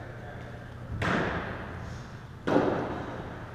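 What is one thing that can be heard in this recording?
A squash ball is struck hard and smacks against the wall, echoing in a large hard-walled court.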